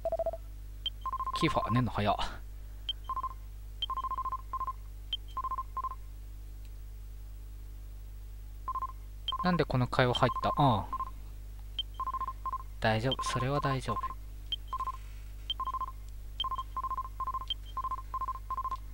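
Short electronic beeps tick rapidly as dialogue text prints in a retro console game.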